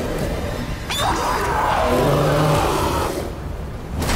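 A monster roars loudly and fiercely.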